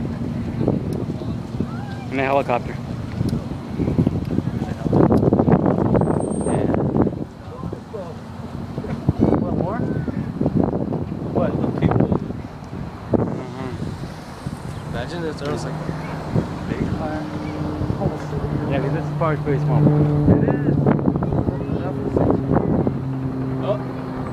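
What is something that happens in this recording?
People talk and call out nearby outdoors.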